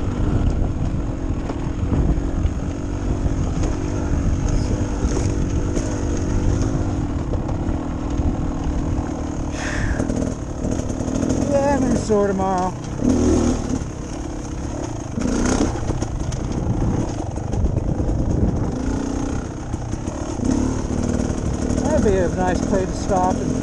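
Tyres crunch over a dirt trail.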